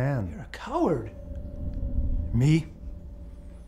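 A man speaks calmly and warily nearby.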